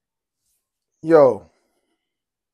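A man lets out a loud, falling hum of delight close by.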